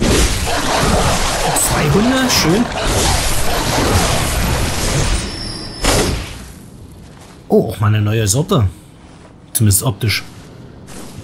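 Heavy weapon blows strike and slash into bodies with wet thuds.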